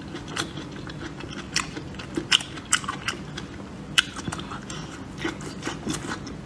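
A woman chews and slurps soft roasted peppers wetly, close to a microphone.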